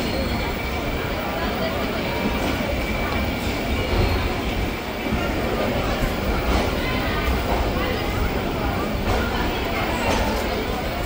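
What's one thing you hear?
A train rumbles and rattles steadily along a platform.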